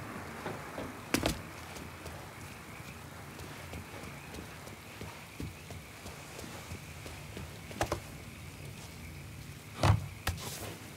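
Footsteps fall softly on grass and stone.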